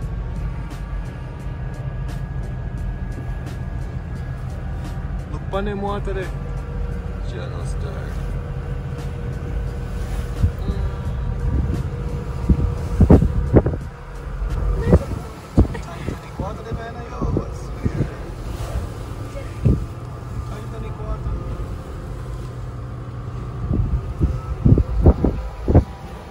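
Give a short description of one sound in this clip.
A car's engine hums low and steady from inside the car.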